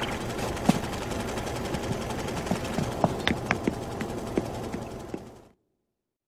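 Light footsteps tap across a floor.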